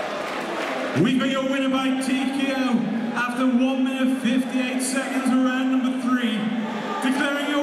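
A man announces loudly over a loudspeaker.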